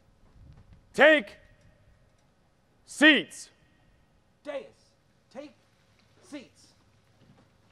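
A young man shouts short commands over a loudspeaker outdoors.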